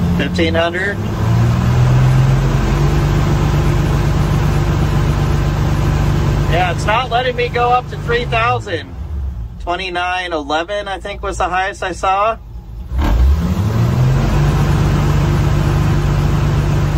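An engine drones loudly nearby, slows down and then revs back up.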